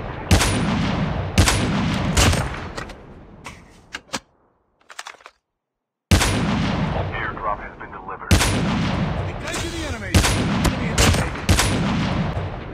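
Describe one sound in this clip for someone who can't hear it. Gunshots fire in sharp bursts and echo.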